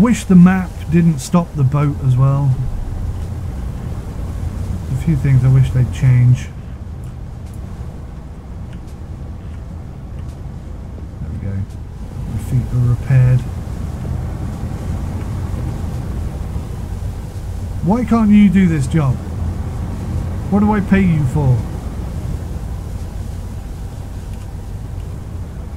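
A boat engine hums low and steadily.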